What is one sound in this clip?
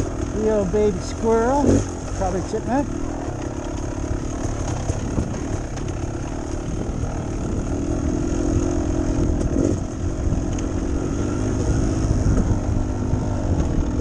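A motorbike engine drones and revs up and down.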